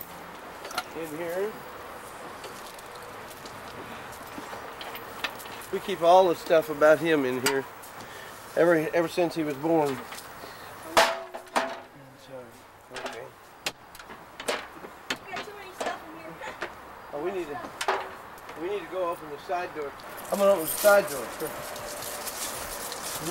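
A metal door creaks and clanks open.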